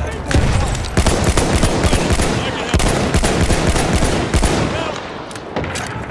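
Gunfire cracks in quick bursts close by.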